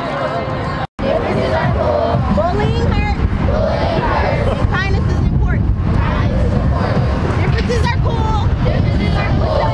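Children's voices chatter and call out nearby.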